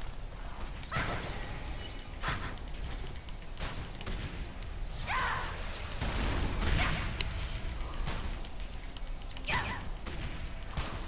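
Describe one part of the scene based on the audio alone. Magic spells burst and crackle in a fight.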